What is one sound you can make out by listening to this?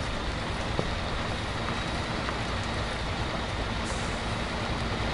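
A heavy truck engine rumbles steadily as it drives slowly over rough ground.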